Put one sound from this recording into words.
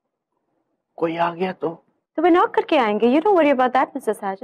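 A woman speaks firmly close by.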